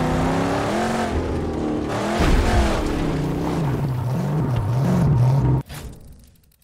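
A car engine roars and revs as the car drives over rough ground.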